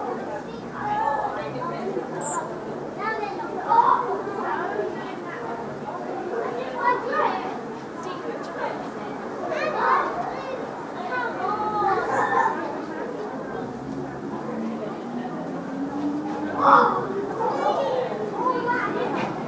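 A crowd of children and adults chatters and shouts outdoors.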